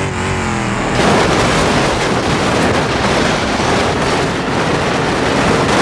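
Metal crunches loudly as two trucks crash.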